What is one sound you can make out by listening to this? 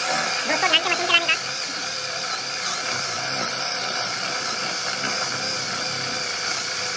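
A power drill whirs steadily as a bit bores into wood.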